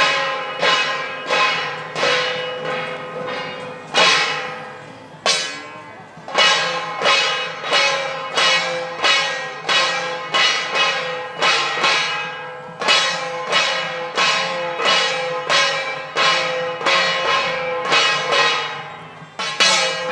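Brass cymbals clash in a steady rhythm and ring out.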